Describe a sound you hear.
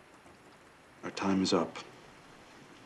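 An older man speaks briefly in a low, calm voice.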